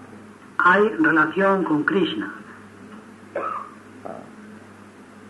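An elderly man speaks calmly, heard through an old recording.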